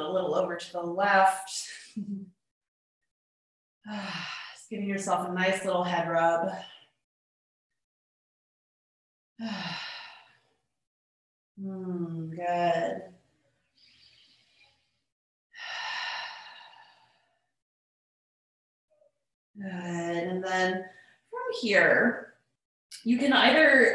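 A woman speaks calmly and slowly, close by, with long pauses.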